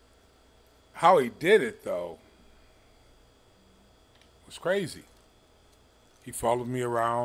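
A middle-aged man speaks with animation, close to a microphone, in short bursts.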